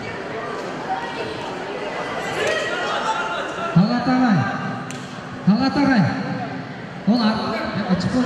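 A crowd chatters and calls out in an echoing hall.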